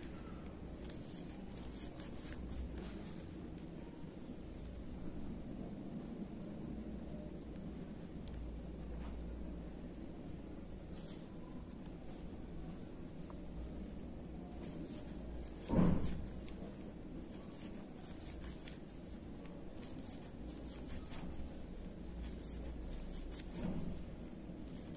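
A crochet hook softly rustles and clicks through yarn.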